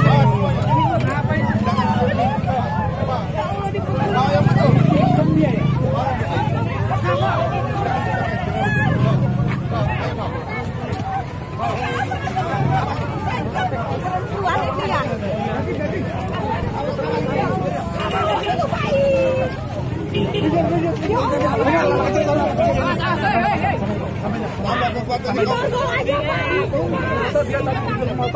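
A crowd of men and women talks and shouts excitedly close by, outdoors.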